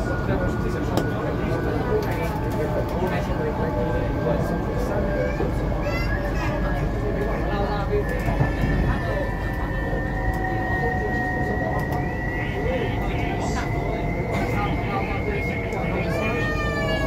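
A train's motor whines, slowly rising in pitch.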